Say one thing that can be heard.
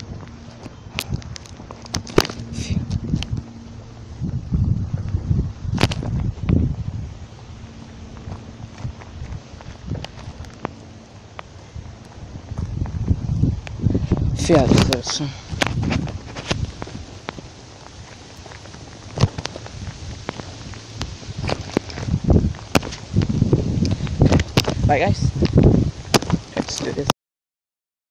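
Footsteps in sneakers crunch on gravelly pavement outdoors.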